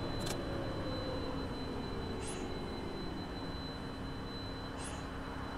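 A bus engine hums low and winds down as the bus slows.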